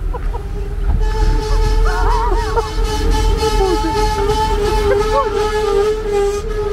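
A train rolls in along the tracks with a steady hum.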